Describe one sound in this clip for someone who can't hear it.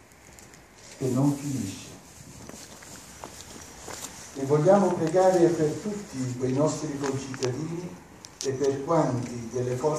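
An elderly man reads out aloud, heard outdoors.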